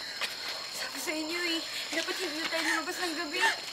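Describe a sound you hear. A young woman speaks nervously, close by.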